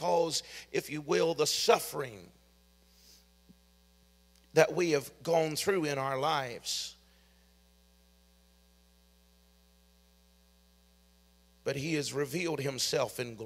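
A middle-aged man speaks calmly and slowly into a microphone, with long pauses.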